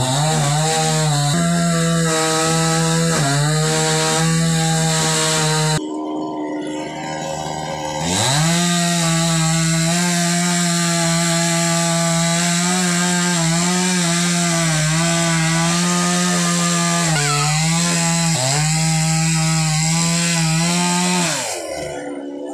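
A chainsaw engine roars steadily nearby, dipping briefly and then revving up again.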